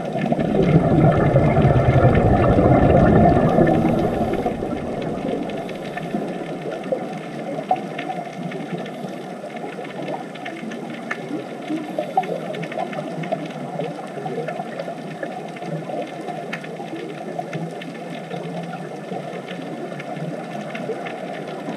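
Air bubbles gurgle and crackle from divers breathing underwater.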